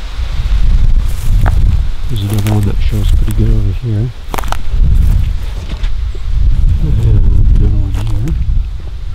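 Footsteps crunch through dry grass and twigs.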